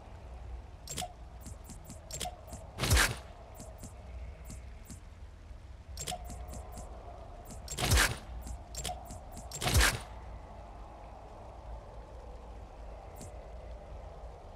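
Menu selections click softly as items are browsed.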